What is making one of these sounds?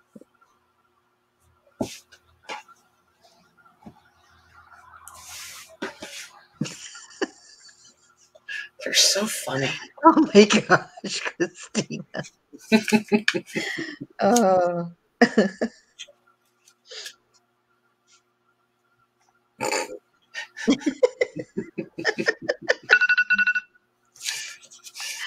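Cloth rustles softly as it is handled and folded.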